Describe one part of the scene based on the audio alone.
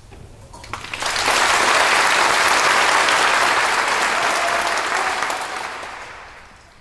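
A large audience applauds in an echoing hall, then the clapping fades away.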